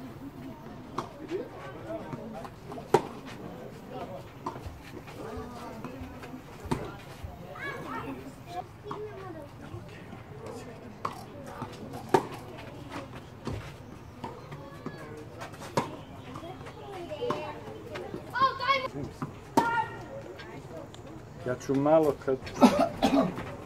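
A tennis ball is struck sharply with a racket, back and forth.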